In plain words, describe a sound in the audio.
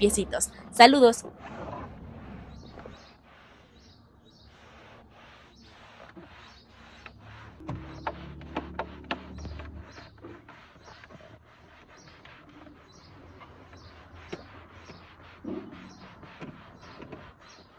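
A cloth rubs and squeaks against a plastic panel.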